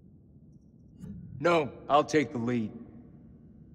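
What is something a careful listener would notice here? A young man speaks briefly and firmly, close by.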